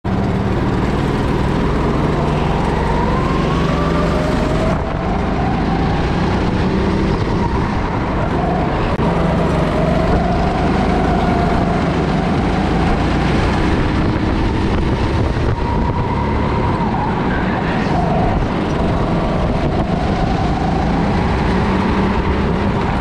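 A go-kart engine buzzes loudly up close, rising and falling in pitch as it speeds up and slows.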